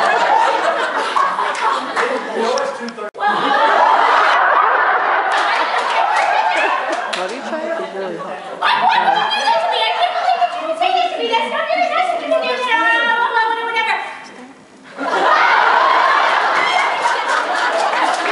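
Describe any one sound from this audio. A large crowd of women cheers and chatters loudly in an echoing hall.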